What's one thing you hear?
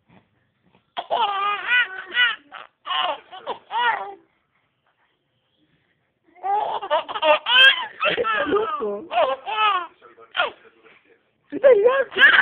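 A baby laughs in bursts close by.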